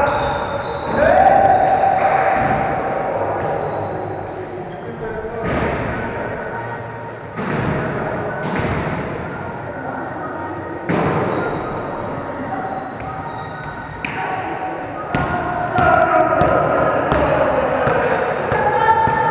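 A volleyball thumps as players hit it, echoing in a large hall.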